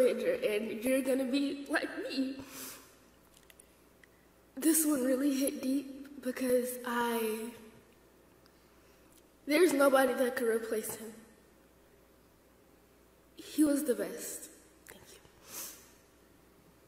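A young woman sings slowly through a microphone in a large echoing hall.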